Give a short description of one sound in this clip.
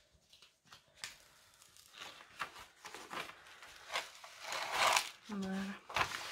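Plastic film crinkles and rustles as it is peeled back from a sheet.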